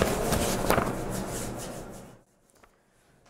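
A woman rubs her hands together briskly.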